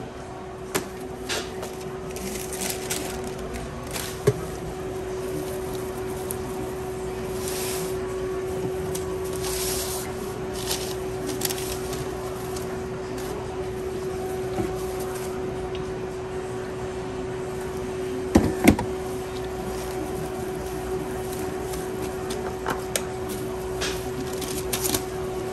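Plastic gloves crinkle and rustle as hands handle food.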